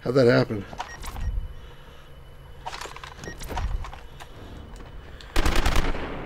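A man talks animatedly, close to a microphone.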